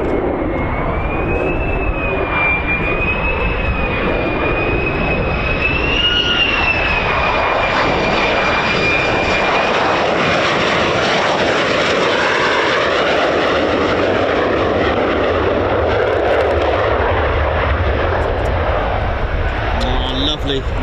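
A jet engine roars loudly and steadily, then fades into the distance.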